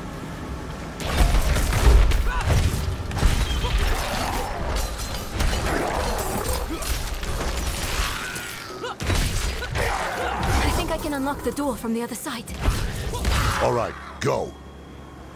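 Weapons clash and strike in a loud fight, with heavy bursts and impacts.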